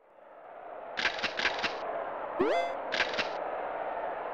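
Short electronic menu blips chime in quick bursts.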